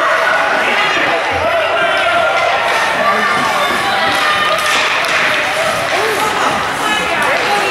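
A crowd of spectators talks and cheers close by in an echoing rink.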